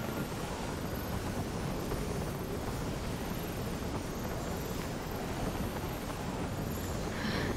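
Wind rushes steadily past during a fast flight.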